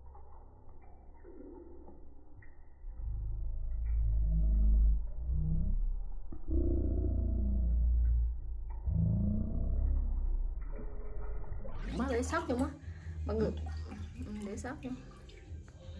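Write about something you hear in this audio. Liquid trickles into a glass bottle.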